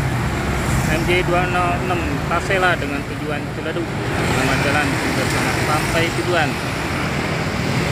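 A bus engine rumbles as the bus drives past.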